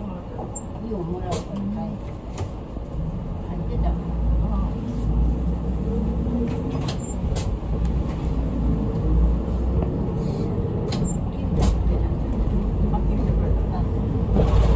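A bus rattles and creaks as it drives along.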